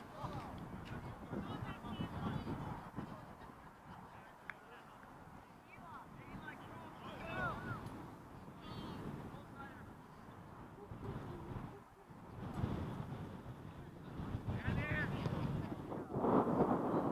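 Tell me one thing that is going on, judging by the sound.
Young players call out to each other across an open field, heard from a distance.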